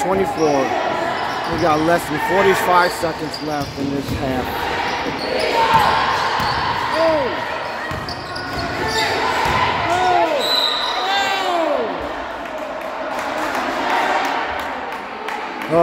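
Young players and spectators call out in a large echoing gym.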